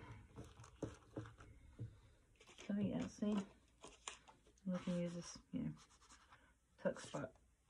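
Paper rustles and crinkles as hands handle it.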